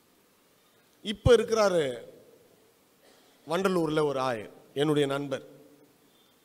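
A man speaks with feeling into a microphone, heard through loudspeakers in an echoing hall.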